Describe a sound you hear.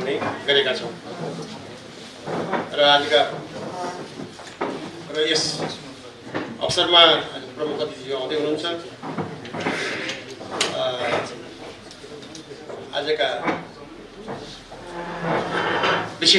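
An older man speaks calmly into a microphone, heard through a loudspeaker.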